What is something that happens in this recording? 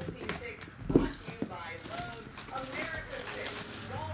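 Cellophane wrapping crinkles as it is torn off a box.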